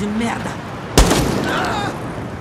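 A single gunshot cracks and echoes.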